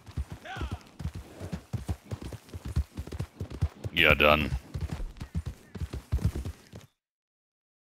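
Horse hooves thud steadily on grass and dirt.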